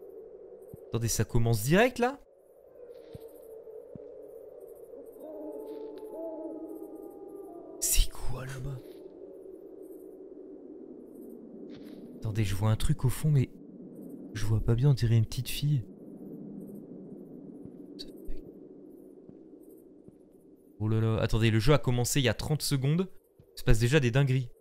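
A young man talks casually and close to a microphone, in short bursts.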